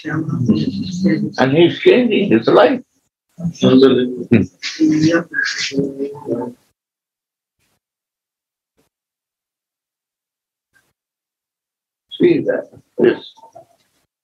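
An elderly man speaks calmly through an online call, with pauses.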